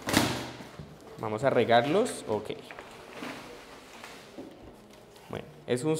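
Cardboard rustles and tears as a box is opened.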